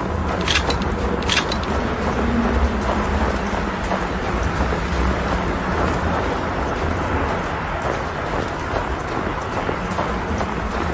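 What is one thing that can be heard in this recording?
Footsteps crunch through snow at a steady walking pace.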